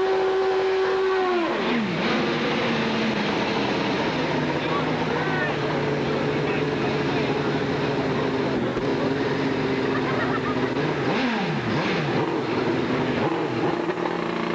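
A motorcycle's rear tyre screeches in a burnout.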